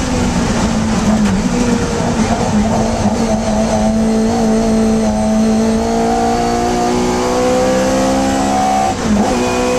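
A small four-cylinder Hillman Imp racing car engine roars at full throttle from inside the cabin, its pitch climbing as it accelerates.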